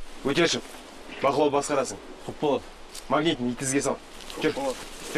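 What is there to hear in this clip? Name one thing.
A young man answers briefly with a shout.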